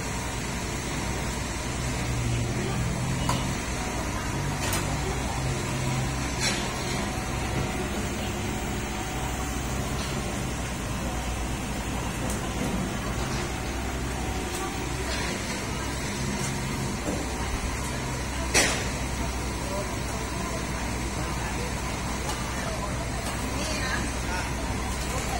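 Metal utensils clink and clatter against pots.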